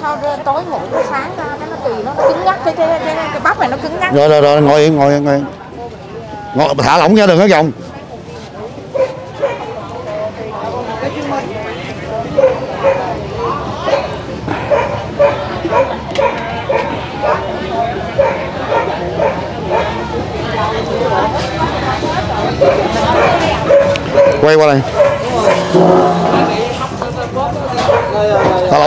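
A crowd of people chatters around outdoors.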